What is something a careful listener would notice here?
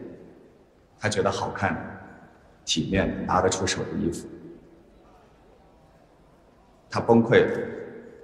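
A young man speaks calmly into a microphone in a reverberant hall.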